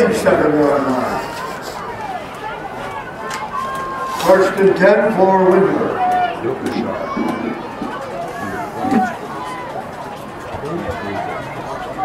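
A crowd murmurs and cheers outdoors in the distance.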